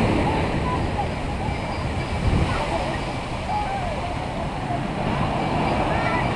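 A crowd of people shouts and calls out in the distance.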